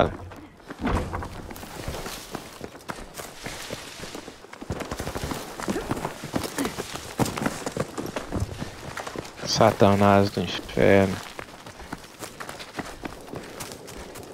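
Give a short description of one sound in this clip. Footsteps crunch on gravel and dry ground.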